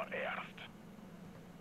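A man speaks briefly through a headset microphone.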